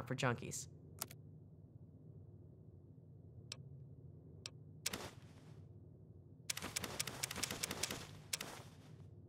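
A handheld device gives short clicks and beeps.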